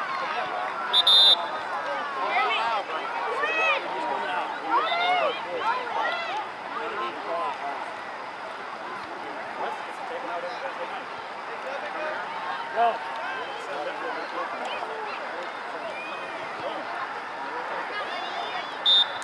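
Children shout and call out across an outdoor field.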